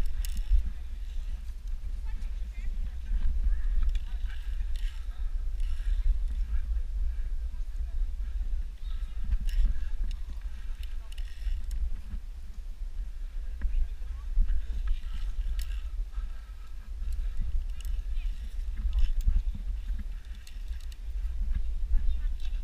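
Wooden steps creak and knock under footsteps on a rope course.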